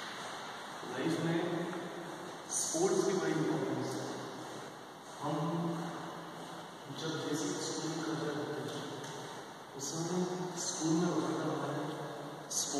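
A young man speaks calmly close by, in an echoing hall.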